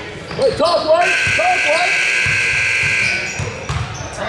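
A loud buzzer sounds steadily for a few seconds.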